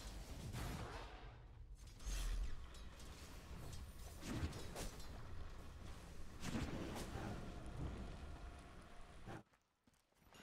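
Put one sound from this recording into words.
Game battle effects clash, whoosh and crackle.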